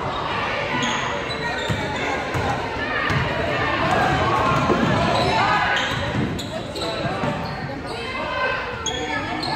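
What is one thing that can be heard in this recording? A crowd of spectators cheers and calls out in a large echoing gym.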